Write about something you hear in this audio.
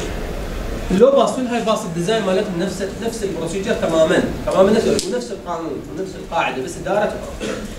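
A man speaks in a lecturing tone.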